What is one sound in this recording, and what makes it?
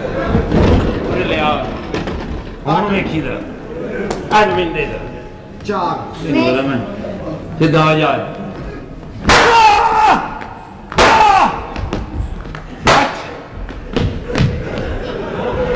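A man shouts with animation on a stage, heard through microphones.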